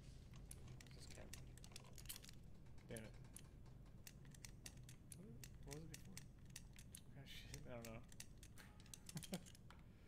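A combination lock's dials click as they turn.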